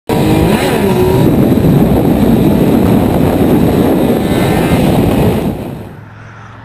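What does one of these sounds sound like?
Wind roars loudly against a motorcycle rider at speed.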